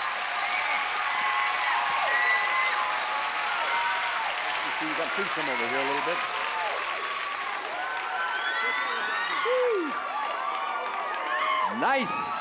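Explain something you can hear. Members of a crowd whistle shrilly.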